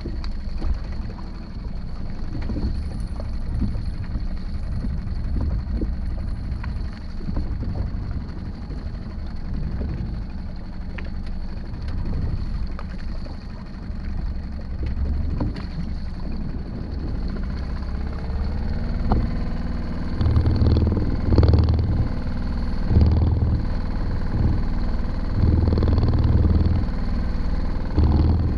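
Wind rumbles across the microphone outdoors on open water.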